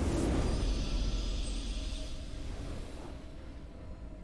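A triumphant game fanfare swells and then fades away.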